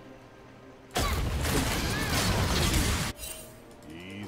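Clashing battle sound effects burst out loudly and then stop.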